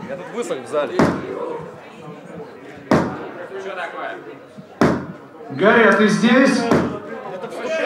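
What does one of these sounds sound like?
A drum is struck with loud, sharp hits every couple of seconds.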